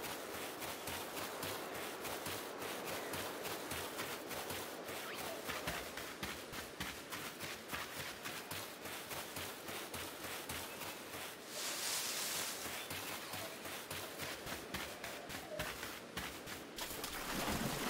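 Quick footsteps run over grass.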